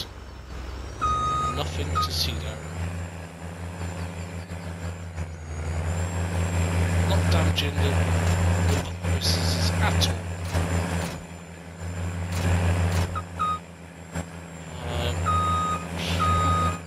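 A heavy tractor engine rumbles steadily and deep.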